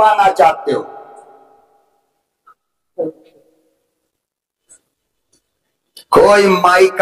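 An elderly man speaks forcefully into a microphone over a loudspeaker, his voice echoing in pauses.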